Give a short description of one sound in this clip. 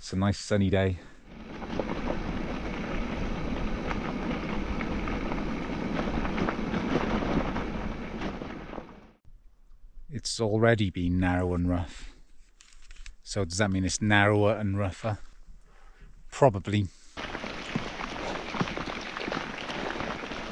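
Bicycle tyres crunch and rumble over a gravel road.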